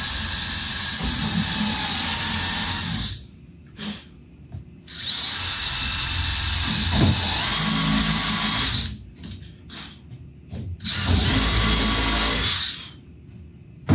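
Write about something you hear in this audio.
A cordless drill whirs in loud bursts.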